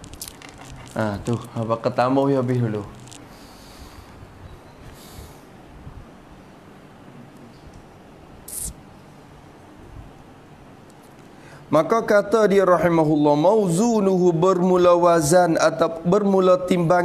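A man recites in a slow, melodic chanting voice into a microphone.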